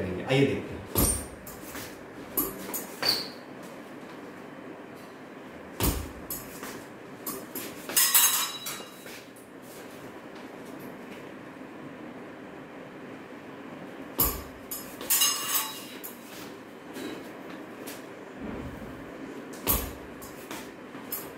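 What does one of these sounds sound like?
Fencing blades clash and click.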